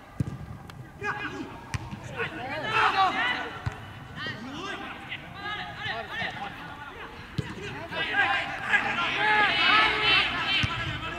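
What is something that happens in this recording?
Young men shout and call out across an outdoor pitch.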